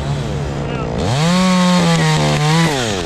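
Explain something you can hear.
A chainsaw revs loudly, rising and falling in pitch.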